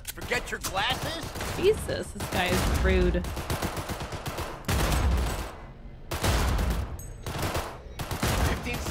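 A pistol fires shots with loud bangs.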